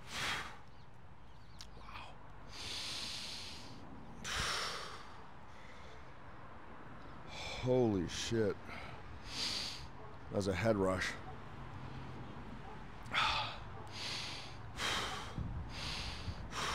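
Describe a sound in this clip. A man breathes out hard in sharp, hissing bursts.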